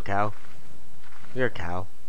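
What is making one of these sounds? A cow lows nearby.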